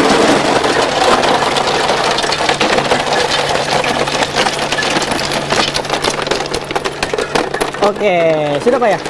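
Ice cubes clatter and rattle as they tumble out of a machine into a tub.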